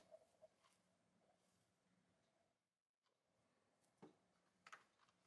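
A hand softly rustles and rubs a knitted wool fabric.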